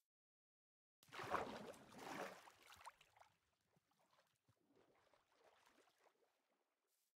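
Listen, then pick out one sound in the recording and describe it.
Water splashes loudly, then more softly.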